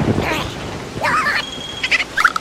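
A small cartoon creature shrieks in a high, squeaky voice.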